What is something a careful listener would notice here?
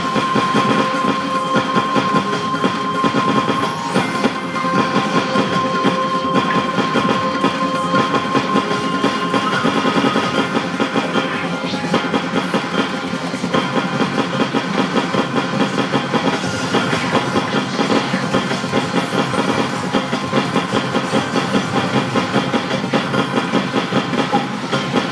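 Loud electronic dance music plays from an arcade rhythm game.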